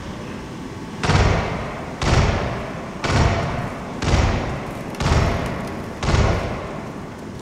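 Heavy footsteps thud slowly on a wooden floor.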